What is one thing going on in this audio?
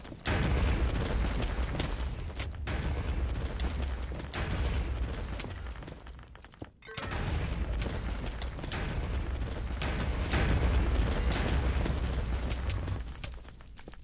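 A sword strikes with quick, sharp hits.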